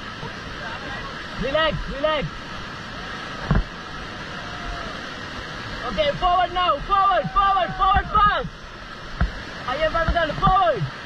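Whitewater rapids roar and rush loudly.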